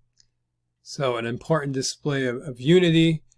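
A man speaks calmly and close, heard through a microphone.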